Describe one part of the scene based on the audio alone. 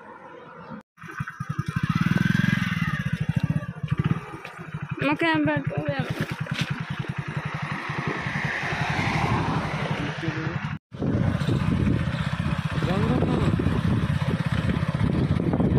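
A motorbike engine idles with a fast, low putter.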